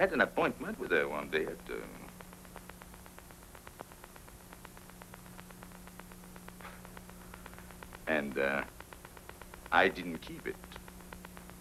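A man speaks softly in short phrases, heard through an old film soundtrack.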